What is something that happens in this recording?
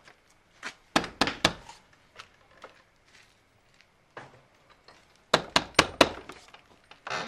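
A man knocks loudly on a wooden door.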